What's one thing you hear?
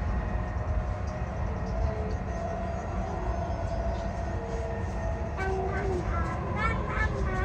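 A train rumbles steadily along an elevated track.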